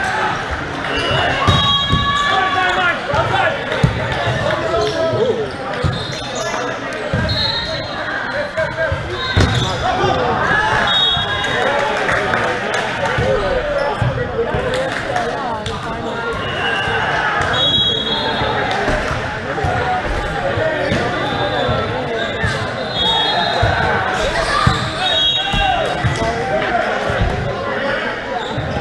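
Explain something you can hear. Young men call out and shout to each other across the court.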